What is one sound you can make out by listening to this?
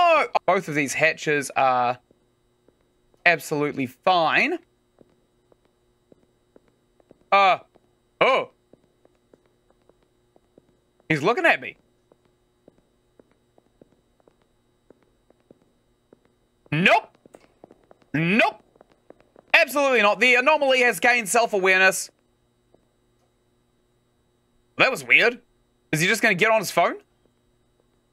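A young man talks close to a microphone in short bursts, with animation.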